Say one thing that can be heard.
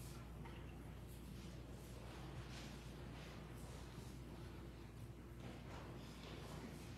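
A group of people murmur and chat quietly in a large echoing hall.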